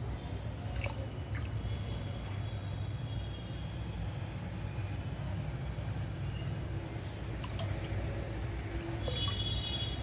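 A hand splashes water in a tub.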